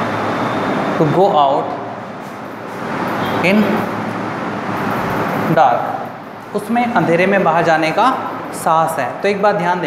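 A young man speaks calmly nearby, as if teaching.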